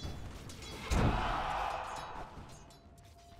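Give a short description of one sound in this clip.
A spell blasts with a burst of magic.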